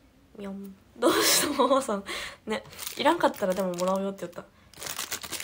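A young woman giggles softly.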